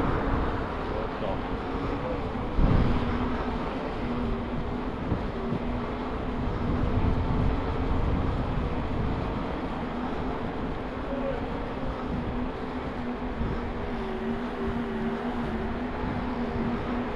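Bicycle tyres hum steadily on asphalt.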